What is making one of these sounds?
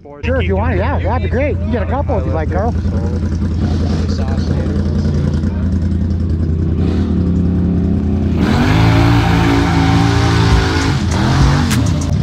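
An off-road vehicle engine rumbles and revs up and down close by.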